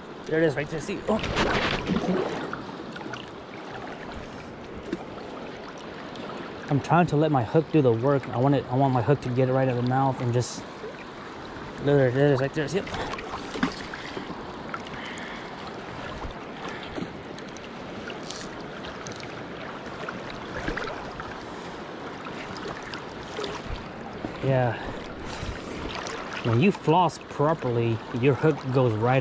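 A river flows and laps nearby.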